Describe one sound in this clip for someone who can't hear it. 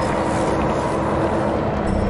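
A magical spell crackles and fizzes.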